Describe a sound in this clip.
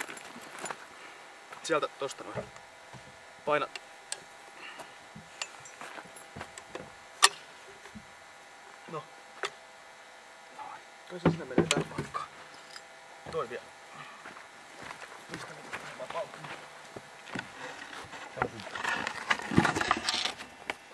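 Two men talk to each other nearby, outdoors.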